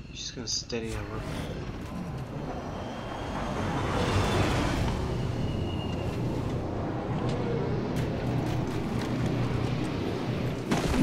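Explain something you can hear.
A large aircraft's engines roar loudly as it descends and hovers overhead.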